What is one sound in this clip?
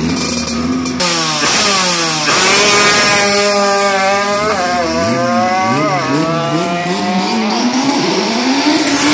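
A motorcycle accelerates hard, its engine screaming higher through the gears as it speeds away.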